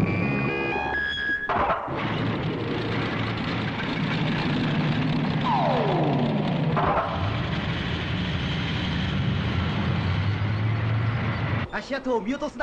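A vehicle engine rumbles and whirs steadily.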